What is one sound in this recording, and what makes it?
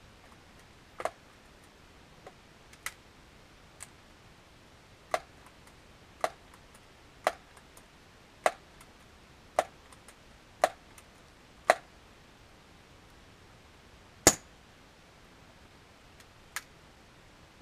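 An air rifle fires with short, sharp cracks, again and again.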